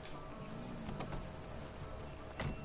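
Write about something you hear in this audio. A car door clicks open.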